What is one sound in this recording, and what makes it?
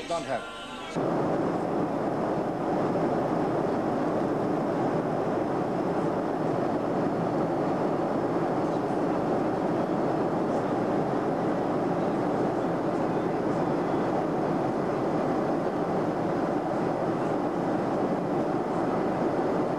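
Jet engines drone inside an airliner cabin in flight.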